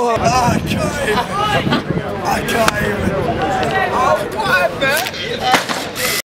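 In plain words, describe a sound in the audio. Several young men shout and laugh with excitement close by.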